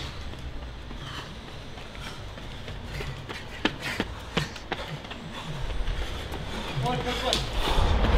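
Footsteps slap quickly on pavement as men run.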